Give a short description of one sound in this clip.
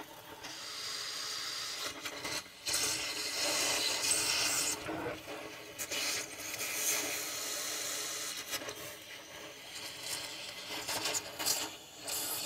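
A gas torch roars and hisses steadily close by.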